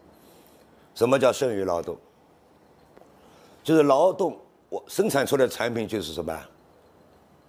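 A middle-aged man speaks calmly into a microphone in short bursts.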